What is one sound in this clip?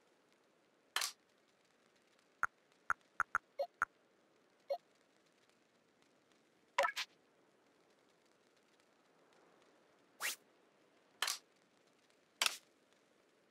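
Short electronic menu blips sound as a cursor moves through a game menu.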